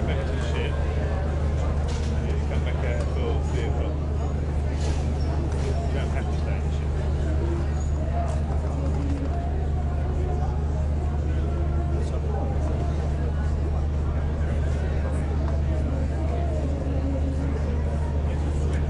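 A crowd of men and women chatters nearby, outdoors.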